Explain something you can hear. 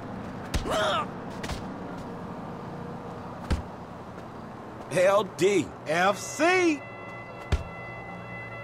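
Punches thud against a body in a scuffle.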